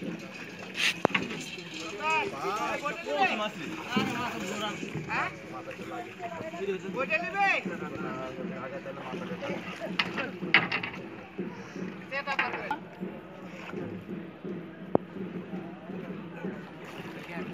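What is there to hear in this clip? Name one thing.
Water splashes and sloshes around men wading.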